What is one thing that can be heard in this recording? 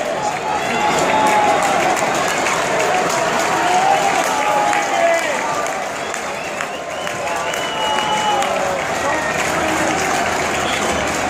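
A large stadium crowd murmurs and cheers in the open air.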